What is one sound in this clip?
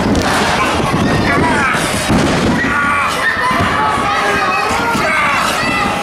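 Bodies thud on a wrestling ring's mat.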